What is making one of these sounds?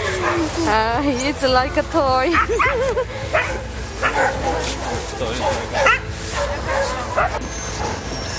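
A dog whines and yelps close by.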